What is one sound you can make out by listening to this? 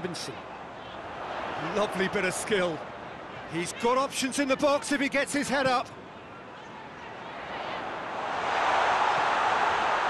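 A stadium crowd roars and swells louder.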